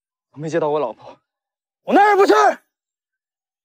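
A young man shouts in alarm.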